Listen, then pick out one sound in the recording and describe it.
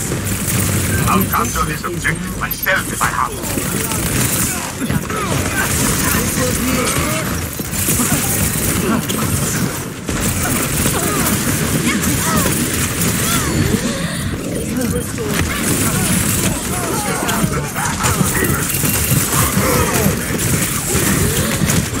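Pistols fire in rapid bursts of laser shots.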